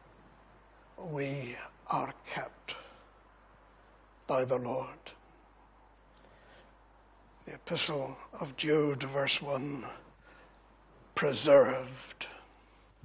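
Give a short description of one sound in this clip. An older man preaches with emphasis into a microphone, in bursts with pauses.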